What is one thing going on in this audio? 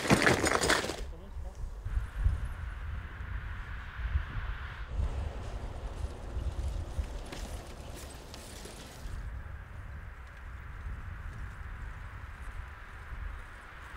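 Bicycle tyres roll along a paved road.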